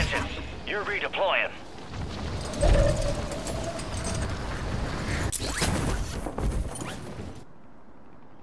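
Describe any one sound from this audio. Wind rushes loudly during a fast fall.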